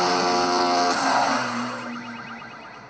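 A motorbike crashes with a sudden scraping thud.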